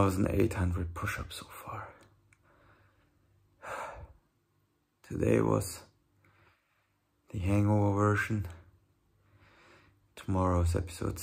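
A young man talks calmly and close to the microphone, in short bursts with pauses.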